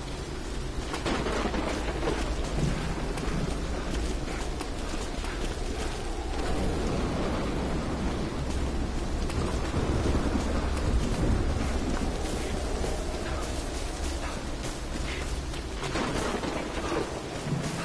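Footsteps run over wet ground.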